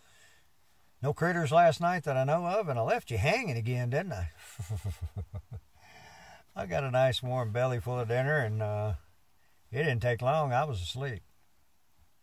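An elderly man speaks calmly close by.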